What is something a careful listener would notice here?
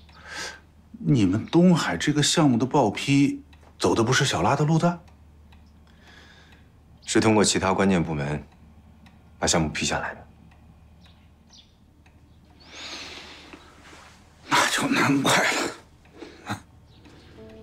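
A middle-aged man speaks in a low, earnest voice, close by.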